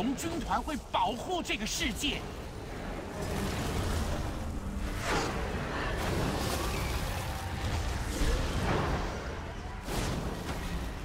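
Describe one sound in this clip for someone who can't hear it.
Magic spells burst and whoosh with crackling energy.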